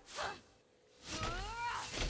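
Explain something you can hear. A magical blast whooshes upward.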